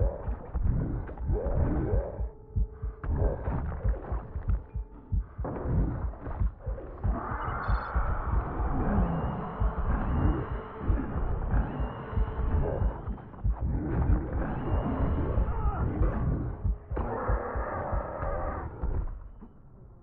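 Creatures snarl and thrash.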